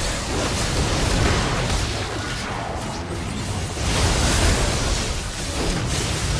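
Game spell effects crackle and whoosh in a busy battle.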